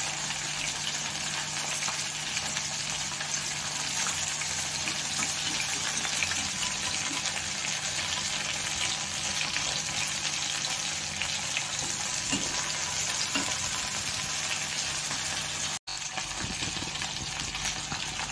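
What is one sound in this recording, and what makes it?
A metal spatula scrapes against the pan.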